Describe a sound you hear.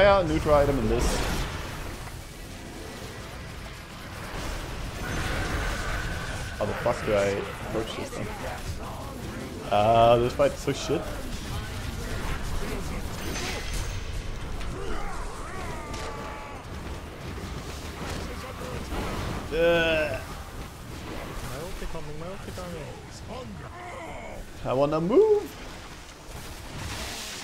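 Spells and weapons clash and burst in a game battle.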